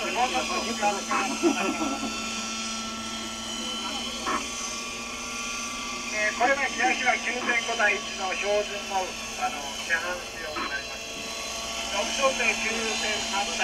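A model helicopter engine buzzes steadily in flight.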